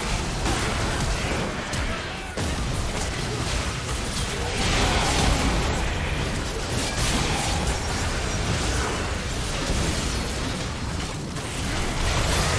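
Magic spells burst and crackle in a fast game battle.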